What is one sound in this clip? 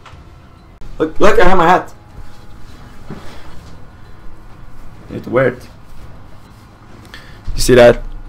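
A young man talks animatedly, close to a microphone.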